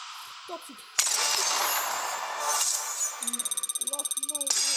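A game jingle chimes.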